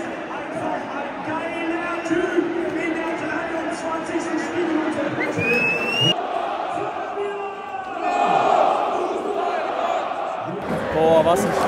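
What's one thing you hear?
A large stadium crowd chants and sings loudly.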